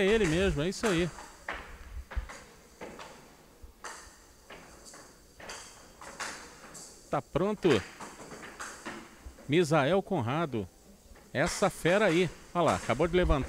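Wooden bats knock against a ball with sharp hits.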